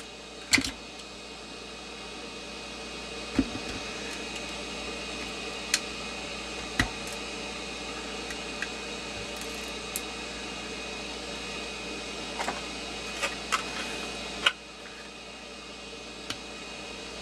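Small tools click and tap against a plastic housing.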